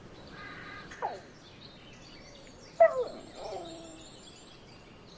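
Newborn puppies squeak and whimper.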